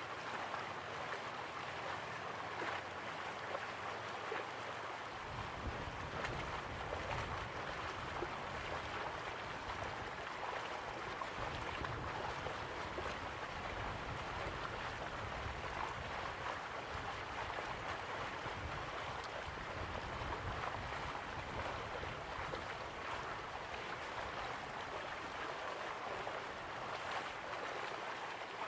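Waterfalls rush steadily in the distance.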